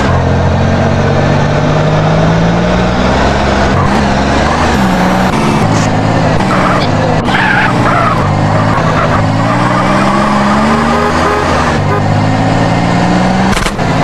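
A car engine revs hard, rising and falling through gear changes.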